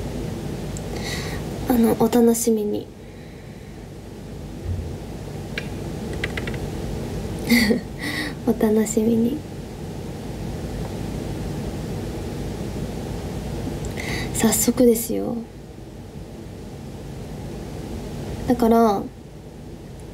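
A young woman speaks softly in short bursts, close to the microphone.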